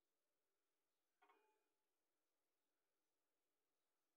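A small metal part is set down with a light knock on a hard surface.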